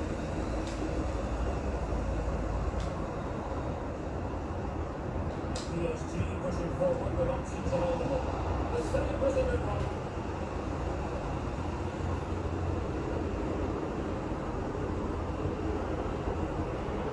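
A stadium crowd roars steadily from a television.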